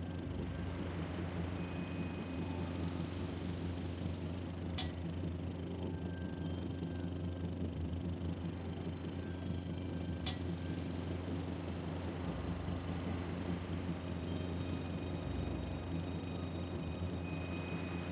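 Water washes against a ship's hull.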